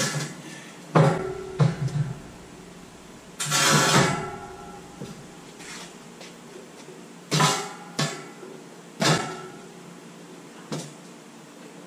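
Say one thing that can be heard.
Metal ramps clank and bang as a man moves them.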